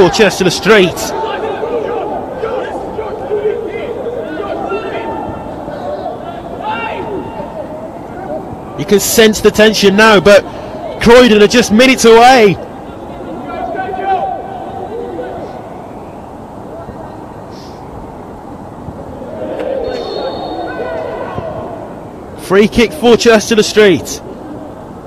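Men shout loudly across an open pitch.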